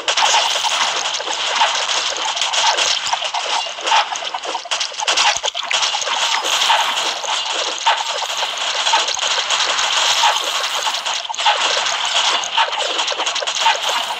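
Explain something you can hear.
Arcade-style game sound effects of arrows firing and striking enemies play rapidly.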